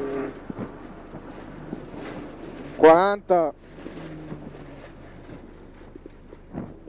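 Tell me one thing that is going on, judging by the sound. A rally car engine drones and revs inside the cabin.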